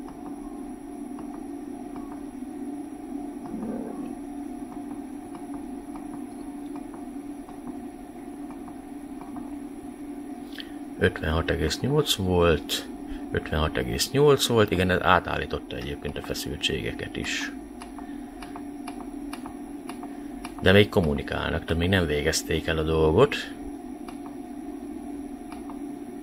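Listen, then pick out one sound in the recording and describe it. An electrical unit hums steadily.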